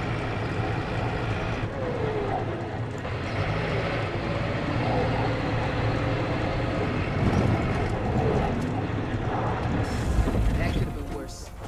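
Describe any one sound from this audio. A tractor engine rumbles as the tractor drives over rough ground.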